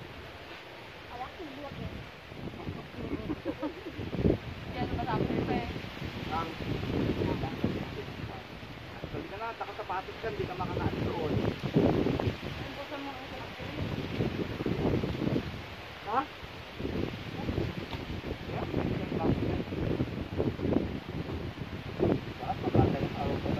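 Young women and men talk and chatter casually close by.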